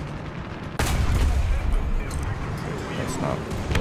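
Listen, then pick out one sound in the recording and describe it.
A shell explodes with a blast.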